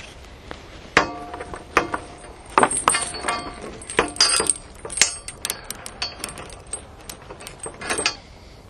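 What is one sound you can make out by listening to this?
A metal chain rattles and clinks against a gate.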